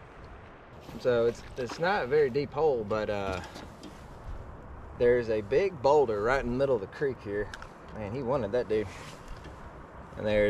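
A man talks with animation close by, outdoors.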